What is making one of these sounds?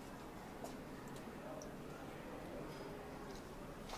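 Coffee pours into a cup of milk.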